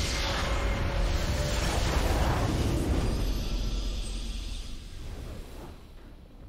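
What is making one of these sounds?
A triumphant fanfare swells and fades.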